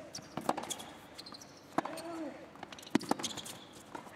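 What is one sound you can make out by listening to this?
A tennis ball is struck back and forth with sharp thwacks.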